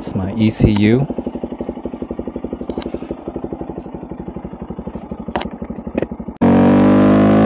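A small motorcycle engine idles with a steady, rapid putter.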